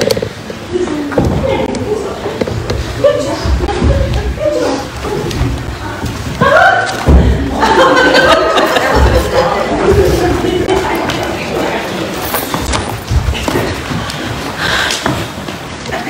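People chatter and children's voices mix in a large echoing room.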